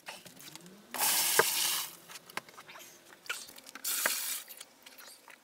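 Water pours from a jug into a plastic tub.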